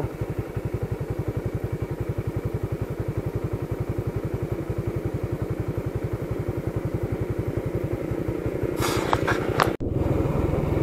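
A motorcycle engine idles with a steady, fast throb.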